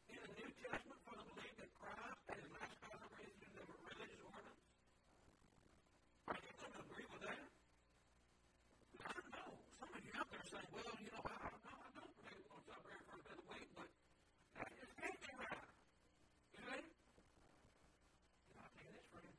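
A middle-aged man speaks calmly into a microphone, explaining in pauses.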